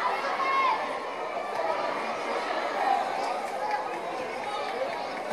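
A crowd of spectators chatters and calls out in a large echoing hall.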